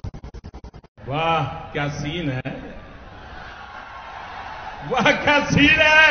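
An older man speaks into a microphone to a large audience.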